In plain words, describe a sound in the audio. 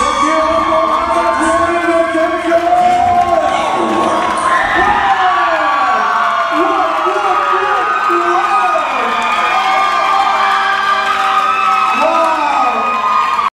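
A woman sings loudly through a sound system.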